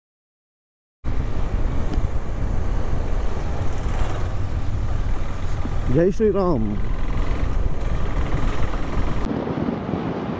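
Wind rumbles and buffets loudly against a moving motorcycle.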